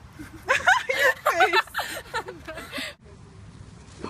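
Two young women laugh and talk excitedly close by.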